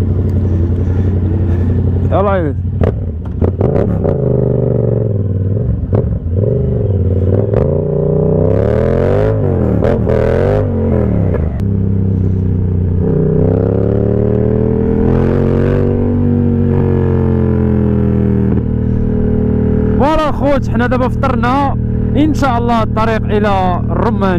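A motorcycle engine rumbles close by, revving up and down as the bike rides off and speeds up.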